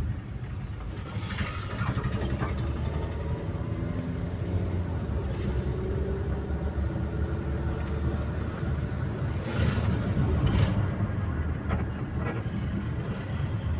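Rain patters on the windscreen.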